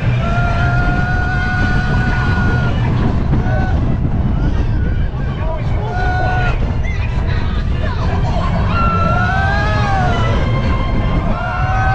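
Wind buffets loudly past, outdoors.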